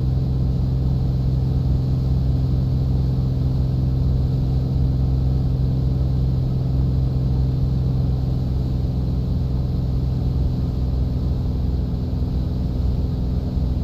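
A small propeller plane's engine drones steadily from inside the cockpit.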